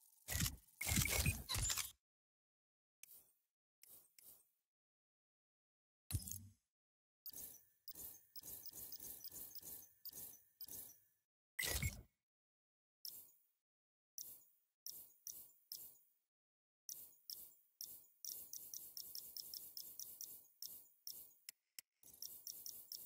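Short electronic menu clicks and whooshes sound as selections change.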